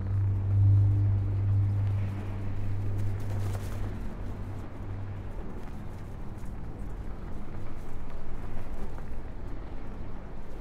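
A deep engine hum drones low and slowly fades.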